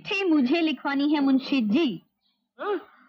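A young woman speaks in a high, lilting voice.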